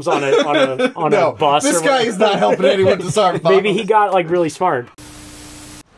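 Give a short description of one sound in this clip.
Several men talk and joke with animation close by.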